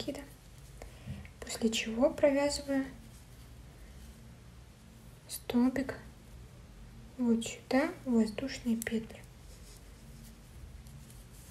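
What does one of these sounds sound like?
A crochet hook softly pulls yarn through stitches.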